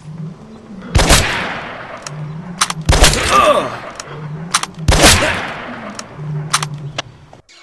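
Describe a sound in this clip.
A rifle fires several loud shots.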